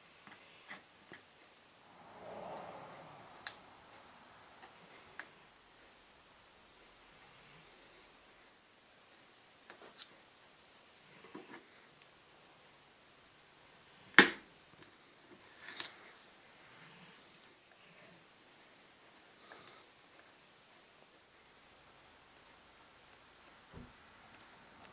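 Small tools tap and click against wood.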